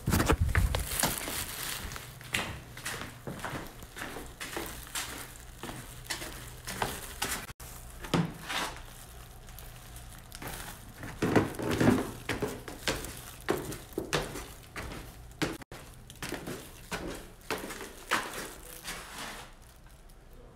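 Footsteps thud on a wooden floor and stairs.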